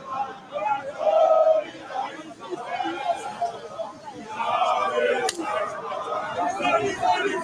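A crowd of men and women chants and shouts loudly outdoors.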